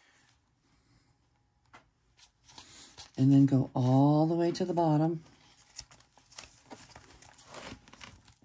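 Paper rustles and crinkles softly as hands handle it.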